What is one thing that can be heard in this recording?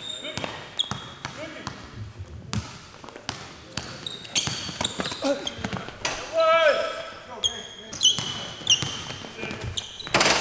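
Sneakers squeak sharply on a polished court.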